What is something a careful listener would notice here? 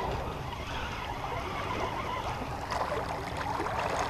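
Water splashes and laps against a small boat.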